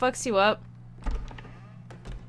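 A door opens with a dull thud.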